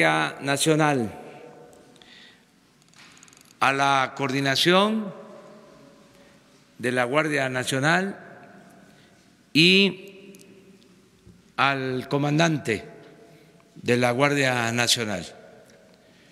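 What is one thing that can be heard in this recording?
An elderly man speaks slowly and calmly into a microphone, pausing between phrases.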